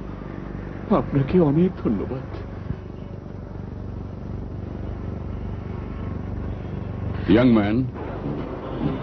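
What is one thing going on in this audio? A man speaks in a low, calm voice.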